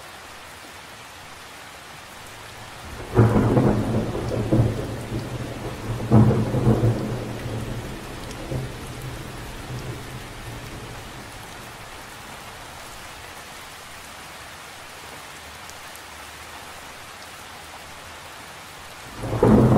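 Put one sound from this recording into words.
Rain patters softly on the surface of a lake.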